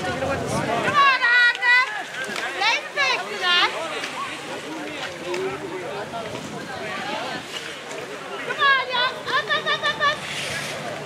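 Spectators shout and cheer loudly in short bursts.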